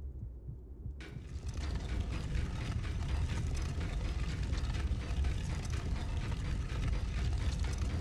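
Heavy stone grinds and rumbles loudly as it moves.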